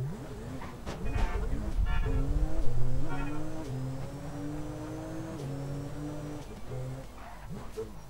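A car engine revs and drones as a car drives along.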